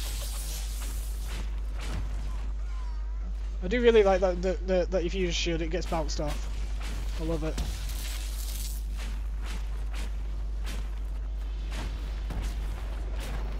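Spells crackle and hit in a fight.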